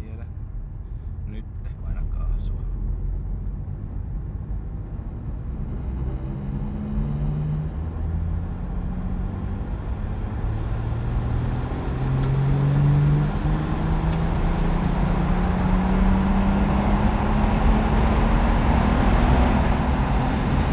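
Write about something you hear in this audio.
Tyres roar on a rough road, growing louder.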